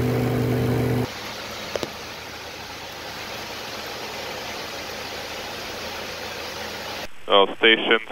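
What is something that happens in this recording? A steady roar of an aircraft fills a cockpit.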